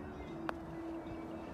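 A putter taps a golf ball with a light click.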